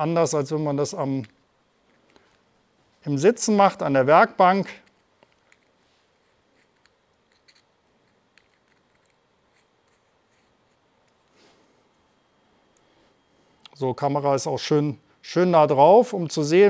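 A screwdriver clicks faintly against a small plastic part.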